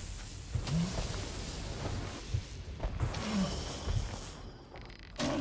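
Electricity crackles and zaps from a lightning spell.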